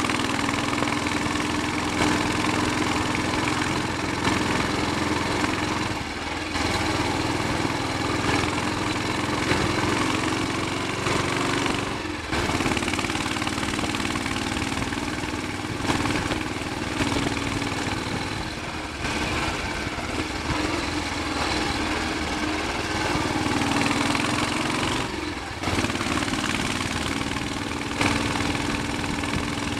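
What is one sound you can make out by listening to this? A single-cylinder Royal Enfield Bullet 500 thumps along, pulling steadily.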